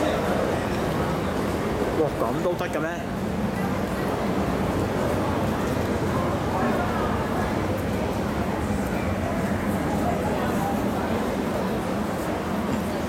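A train rumbles past and slows to a stop.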